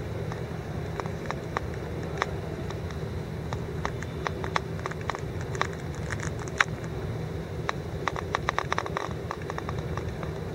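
A crowd stands in near silence, with faint shuffles and small clicks.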